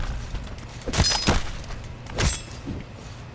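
A sword strikes a creature's body with a wet thud.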